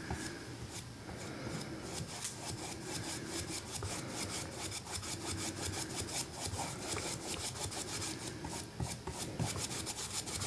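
A brush scrubs rapidly against a canvas.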